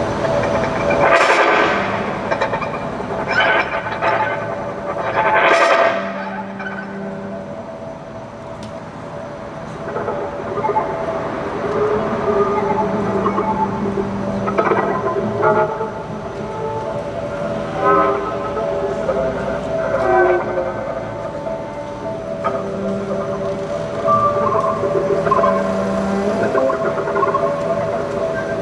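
A violin plays a melody outdoors.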